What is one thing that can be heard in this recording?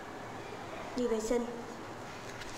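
A young woman speaks sharply nearby.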